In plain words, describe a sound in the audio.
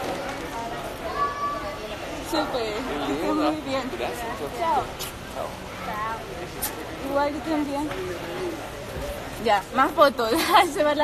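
A young woman talks with animation close by.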